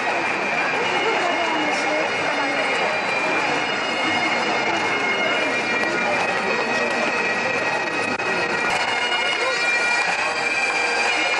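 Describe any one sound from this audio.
A large outdoor crowd murmurs and chatters all around.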